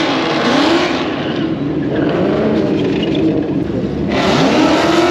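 Race car engines rumble and rev loudly.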